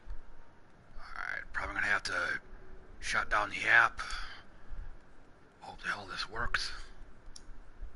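A man speaks casually, close to a microphone.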